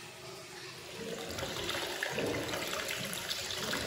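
Water pours from a spout and splashes into a pool.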